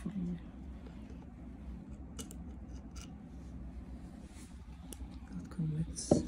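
Metal pliers click against a plastic part.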